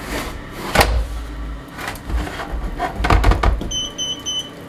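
Metal clanks and scrapes as a container is handled.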